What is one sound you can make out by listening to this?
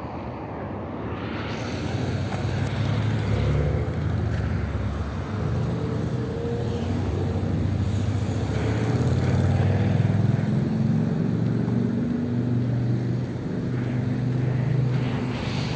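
Car engines hum and tyres roll steadily along a busy road.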